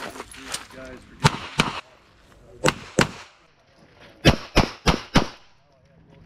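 Loud pistol shots crack outdoors in quick bursts.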